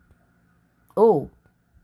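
An elderly woman lets out a short, high exclamation close by.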